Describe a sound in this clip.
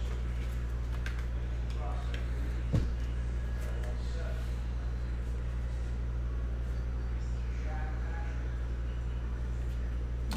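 A plastic card case clicks and rattles in hands.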